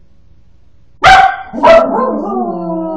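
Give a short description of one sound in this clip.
A dog barks loudly twice.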